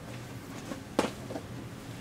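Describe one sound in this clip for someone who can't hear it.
A pair of pliers is set down with a soft knock.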